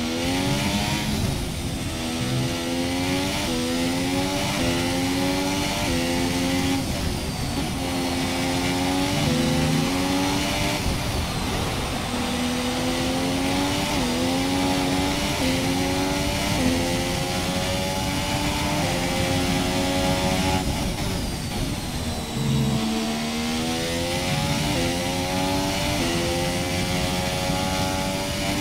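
A racing car engine screams loudly, rising in pitch through each gear and dropping sharply at every gear change.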